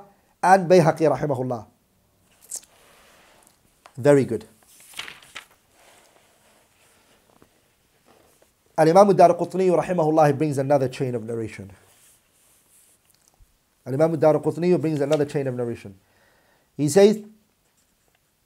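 A young man reads aloud calmly into a close microphone, in short bursts with pauses.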